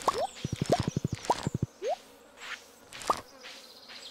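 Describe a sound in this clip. A paper letter unfolds with a soft swish.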